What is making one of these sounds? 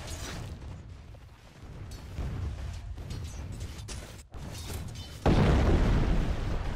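Game characters clash in battle with spell blasts and hits.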